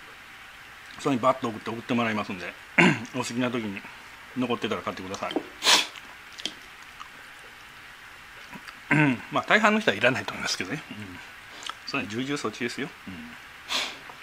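A man speaks calmly and closely, pausing often.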